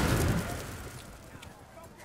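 A flock of crows flaps its wings.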